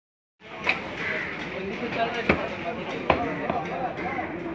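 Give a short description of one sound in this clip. A cleaver chops meat on a wooden block with sharp thuds.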